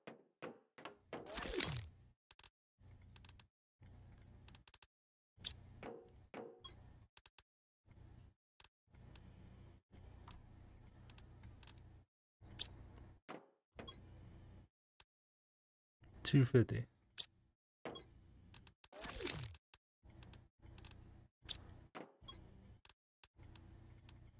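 Short soft clicks sound again and again as items are moved between menus.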